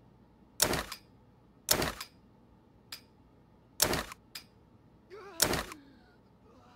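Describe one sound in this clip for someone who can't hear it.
Short sharp clicks and thuds sound as items are dropped into place.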